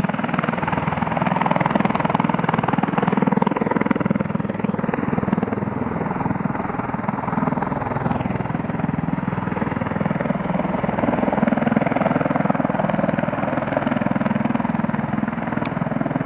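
An aircraft's rotors thump and roar loudly and steadily.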